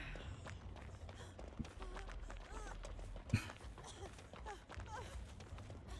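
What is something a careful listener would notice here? Footsteps run quickly through tall grass.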